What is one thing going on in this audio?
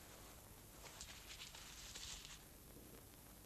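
A man rustles a small paper in his hands.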